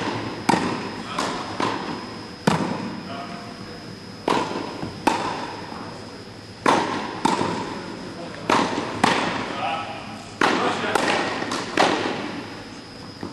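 Tennis balls bounce on the court with soft thuds.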